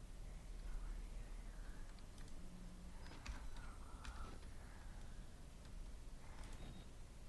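A young woman speaks softly into a close microphone.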